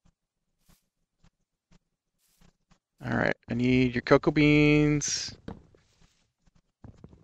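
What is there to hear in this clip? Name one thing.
Footsteps crunch softly on grass at a steady pace.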